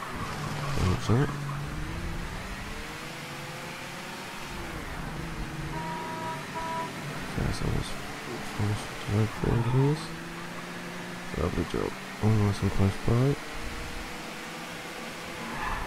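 A car engine hums steadily, rising and falling in pitch as it drives.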